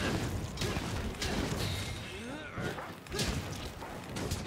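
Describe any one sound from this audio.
Explosions boom and crackle in sharp bursts.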